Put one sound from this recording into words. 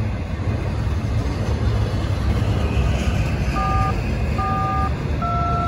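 A long freight train rumbles and clatters steadily past, close by.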